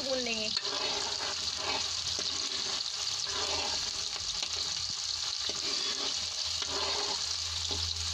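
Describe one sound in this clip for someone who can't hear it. A metal ladle scrapes and stirs in a pan.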